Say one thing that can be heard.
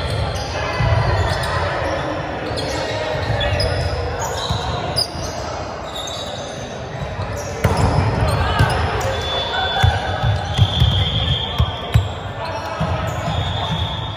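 Volleyballs thump against hands and arms in a large echoing hall.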